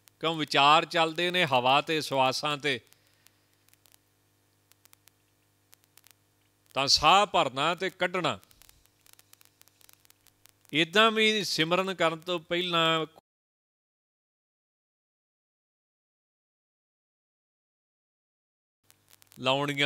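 A man speaks calmly into a microphone, heard through a loudspeaker, in short phrases with pauses.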